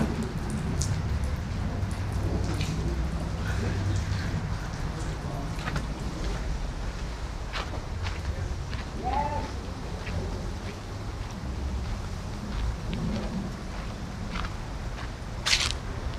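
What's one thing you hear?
Wind blows outdoors with a steady low rumble.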